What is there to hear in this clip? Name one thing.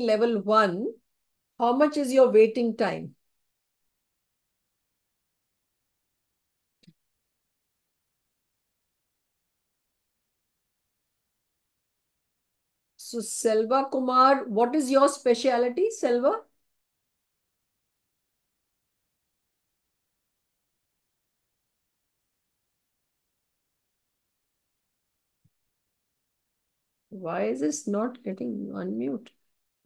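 A woman speaks calmly over an online call, with long pauses.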